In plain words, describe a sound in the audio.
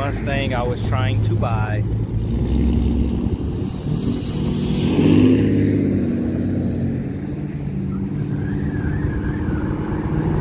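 A sports car engine rumbles deeply and revs up.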